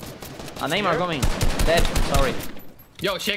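Game gunshots crack in quick bursts.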